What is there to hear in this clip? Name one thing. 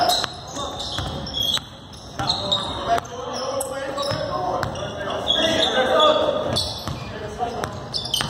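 A crowd of spectators chatters and calls out.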